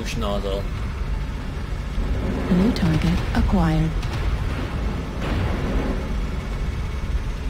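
A heavy machine rumbles low and steadily.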